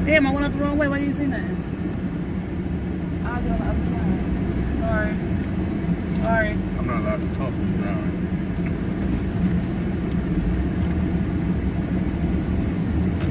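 A car engine and road rumble hum steadily.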